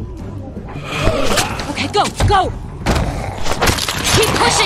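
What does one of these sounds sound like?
Heavy blows thud during a close scuffle.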